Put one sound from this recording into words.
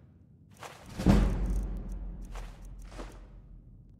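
Coins jingle briefly.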